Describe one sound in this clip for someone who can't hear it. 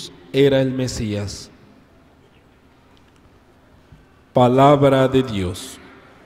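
A man speaks calmly into a microphone, heard through a loudspeaker in a large echoing hall.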